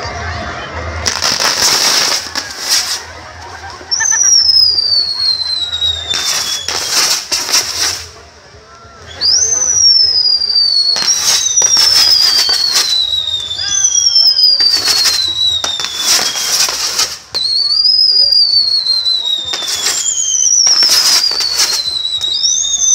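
Fireworks crackle and bang in loud bursts close by.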